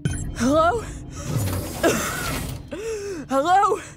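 A heavy metal door slides open with a mechanical hiss.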